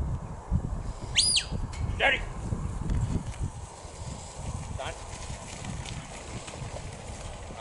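A dog's paws patter across grass.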